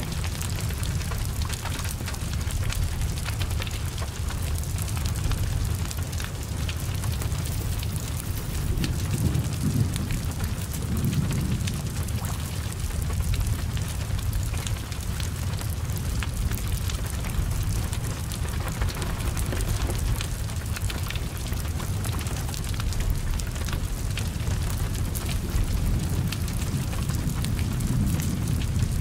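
Rain falls steadily outdoors.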